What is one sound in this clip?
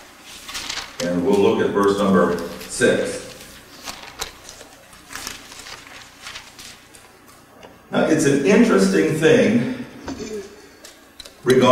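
A middle-aged man speaks calmly into a microphone, heard through a loudspeaker in a large room.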